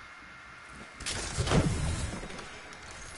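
A game character lands with a heavy thud.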